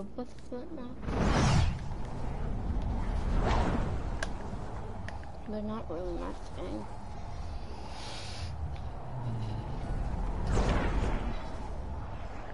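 A loud whoosh rushes past several times.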